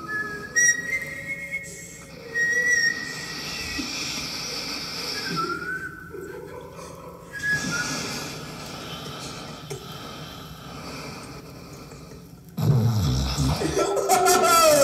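Music plays from a record on a turntable.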